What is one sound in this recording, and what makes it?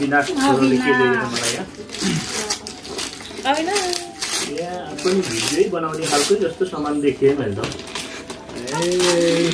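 Wrapping paper rustles and crinkles as a gift is unwrapped.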